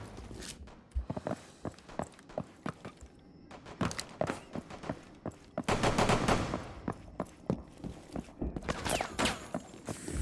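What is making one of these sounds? Footsteps tap quickly on a wooden floor.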